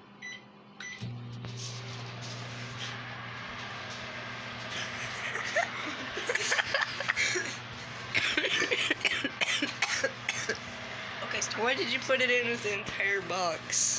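A microwave oven hums as it runs.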